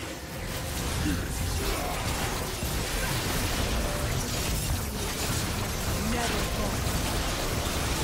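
Magic spell effects burst and crackle in a busy fight.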